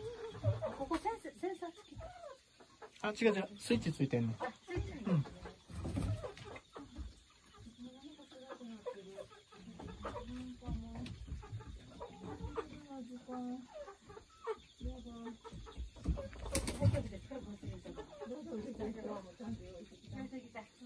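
Hens cluck and murmur close by.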